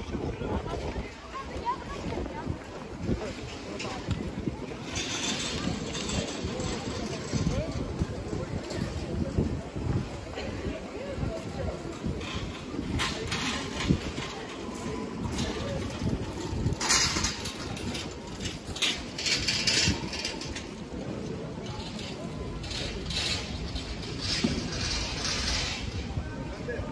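A busy outdoor crowd murmurs nearby.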